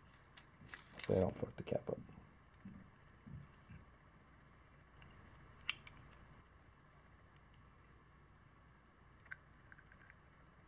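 A metal tool clicks and clinks against metal parts.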